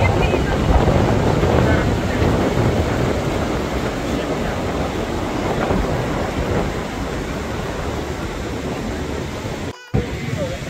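Wind blows hard, rumbling past.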